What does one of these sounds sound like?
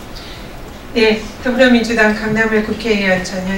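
A woman speaks firmly through a microphone in a large echoing room.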